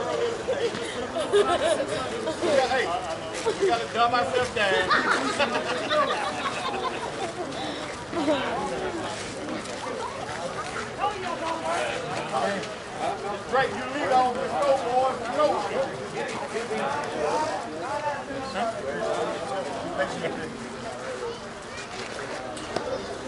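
Several men talk and call out nearby, outdoors.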